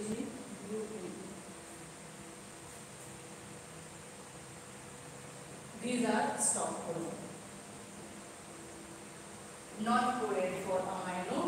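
A young woman speaks calmly, in short phrases.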